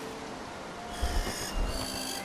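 A large bird flaps its wings close by.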